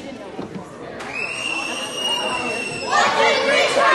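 A scoreboard buzzer sounds a long steady blare.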